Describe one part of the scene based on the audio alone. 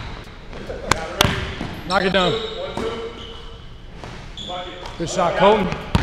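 A basketball bounces on a wooden floor with a booming echo.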